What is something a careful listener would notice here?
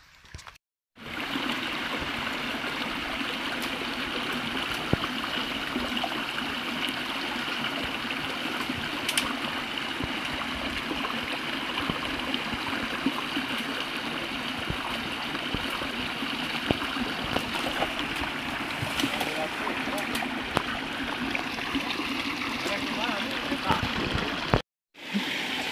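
Water trickles steadily in a shallow stream.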